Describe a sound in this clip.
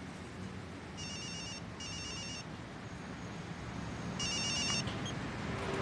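A mobile phone rings in short bursts.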